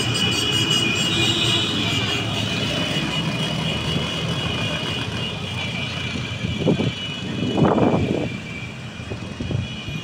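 A convoy of quad bikes rumbles along a busy street outdoors.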